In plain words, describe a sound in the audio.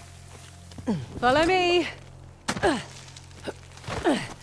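A young woman calls out with effort.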